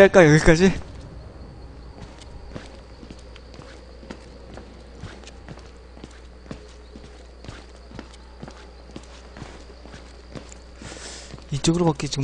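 Footsteps crunch slowly on the ground.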